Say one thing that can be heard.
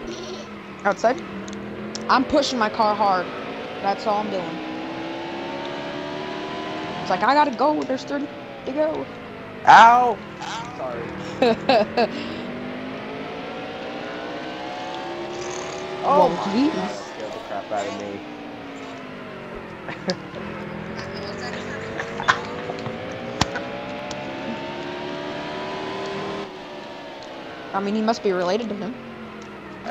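A race car engine roars, its pitch rising and falling as it speeds up and slows down.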